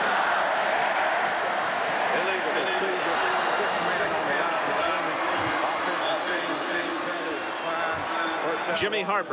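A large crowd roars steadily outdoors.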